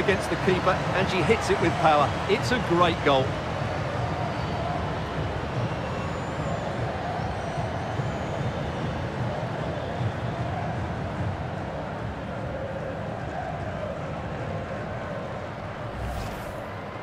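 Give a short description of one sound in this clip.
A large stadium crowd roars and cheers.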